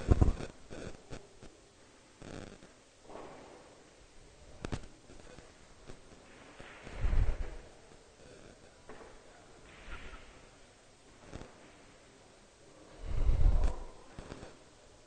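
Billiard balls click against each other and roll on the cloth.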